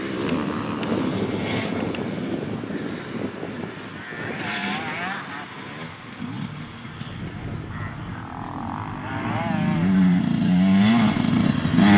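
Dirt bike tyres scatter gravel and dirt.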